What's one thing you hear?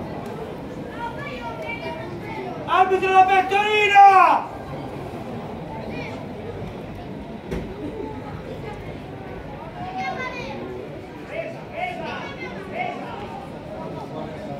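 Young men shout to each other across an open outdoor pitch.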